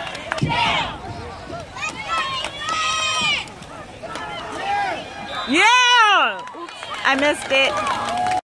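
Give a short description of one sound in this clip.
Young boys shout and cheer loudly outdoors nearby.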